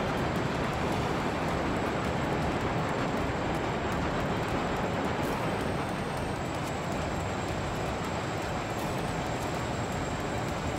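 Wind rushes loudly and steadily, as if high in the air.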